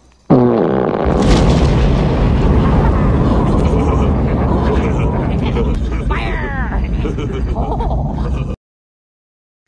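A huge explosion booms and rumbles on.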